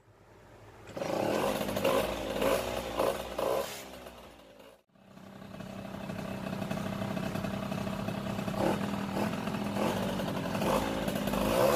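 A moped engine runs and revs loudly.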